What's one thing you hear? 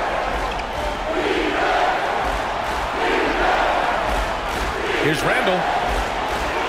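A large crowd cheers steadily in an echoing arena.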